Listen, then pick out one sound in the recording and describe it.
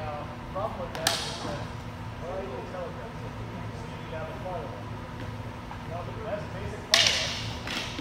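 Swords clash sharply in an echoing hall.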